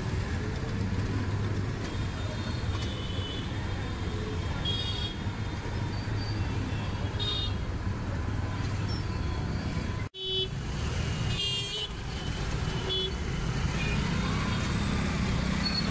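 Motorcycle engines rumble close by in busy traffic.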